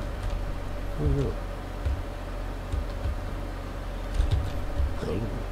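Heavy metal footsteps thud slowly on the ground.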